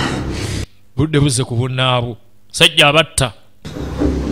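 A man speaks in a strained, halting voice nearby.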